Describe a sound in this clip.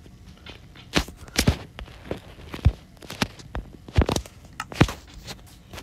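Short clicks sound as game menus open and close.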